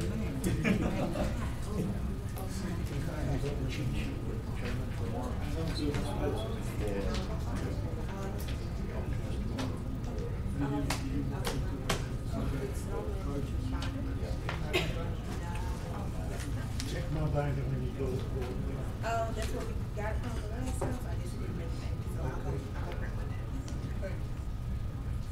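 A steady low hum runs throughout.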